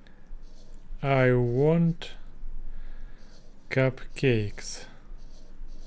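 A young man speaks slowly and clearly into a close microphone, pronouncing words one at a time.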